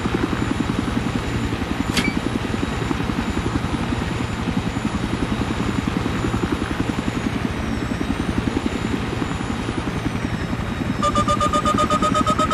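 A helicopter's rotor thumps steadily and rapidly.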